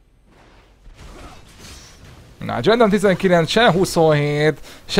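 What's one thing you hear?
Magic spells whoosh and crackle in a fight.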